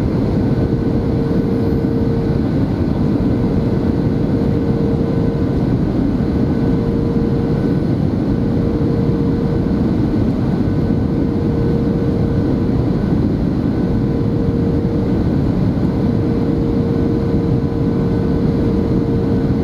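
Jet engines and rushing air roar steadily inside the cabin of an airliner on approach.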